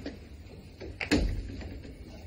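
A wooden door closes with a thud.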